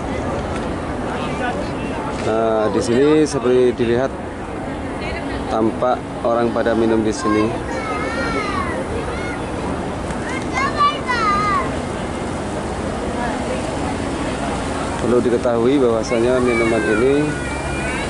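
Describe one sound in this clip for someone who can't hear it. A crowd murmurs steadily in the background outdoors.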